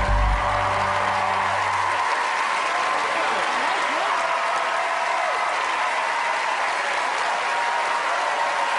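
A large crowd cheers and screams loudly in a big hall.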